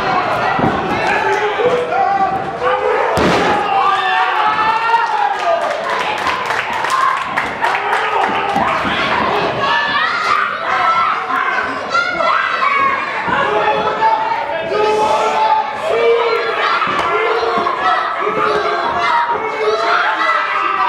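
A crowd shouts and cheers loudly throughout.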